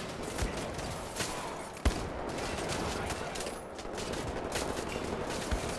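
Gunshots ring out in sharp bursts.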